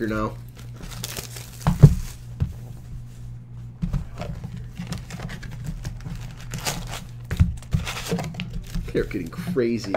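Cardboard packaging rustles and scrapes as it is opened.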